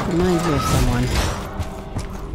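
Gunshots fire in a quick burst.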